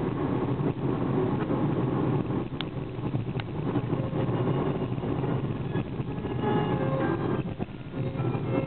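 A car engine hums steadily from inside the cabin as the car drives along.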